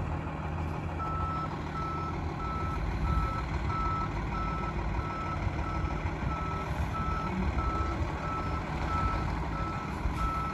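A truck's reversing alarm beeps at an even pace.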